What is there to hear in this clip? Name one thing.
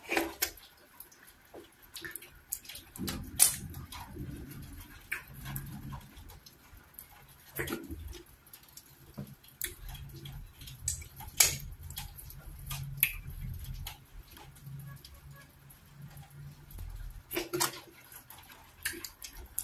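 Fingers squish and tear soft food.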